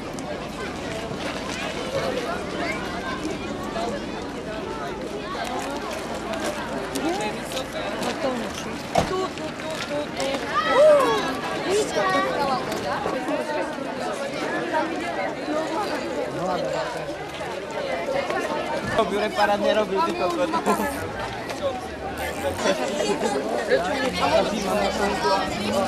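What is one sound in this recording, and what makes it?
A crowd of children and adults chatter outdoors.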